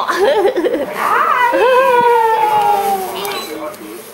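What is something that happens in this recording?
A baby babbles with a long, drawn-out squeal.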